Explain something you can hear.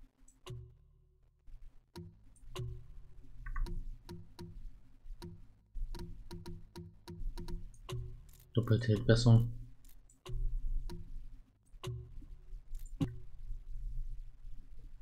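Soft menu clicks tick again and again.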